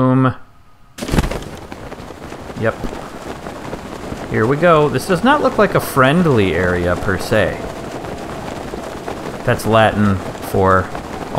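Wind rushes steadily past a gliding figure.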